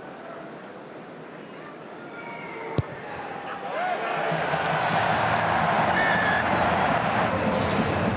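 A large stadium crowd murmurs, then cheers loudly.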